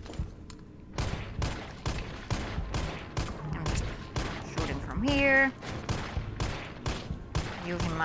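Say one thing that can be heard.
A pistol fires rapid shots in quick succession.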